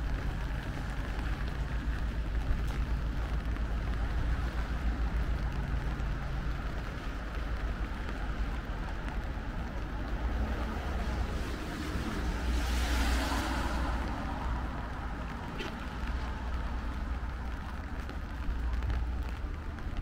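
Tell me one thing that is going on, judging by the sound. Traffic hums steadily along a wet city street at night.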